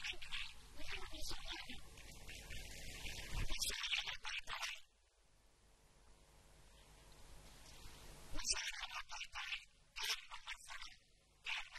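A man recites with animation into a microphone, heard through a loudspeaker.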